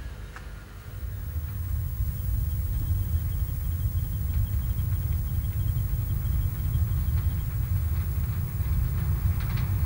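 A steam train chugs steadily in the distance.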